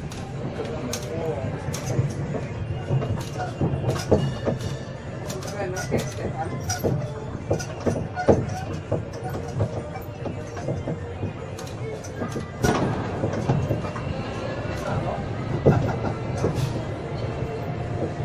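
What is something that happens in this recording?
A tourist train rumbles and rattles along a street.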